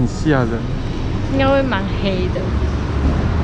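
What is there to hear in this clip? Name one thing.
A young woman speaks close by in short, lively phrases.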